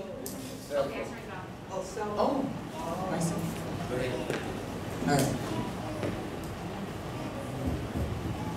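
A woman speaks calmly into a microphone, heard through loudspeakers in an echoing room.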